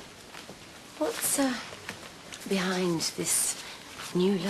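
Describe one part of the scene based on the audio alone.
A young woman speaks calmly and briskly nearby.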